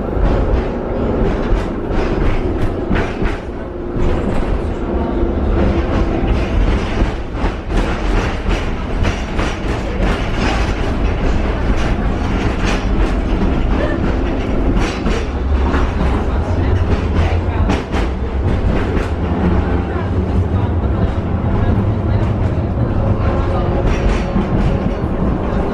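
A tram rumbles and rattles steadily along its tracks.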